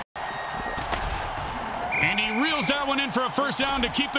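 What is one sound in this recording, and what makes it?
Players crash together in a heavy tackle.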